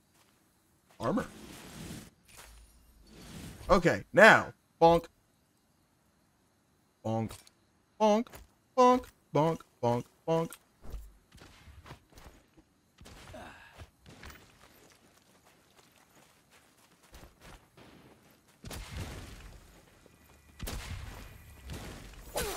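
A young man talks into a microphone with animation, close up.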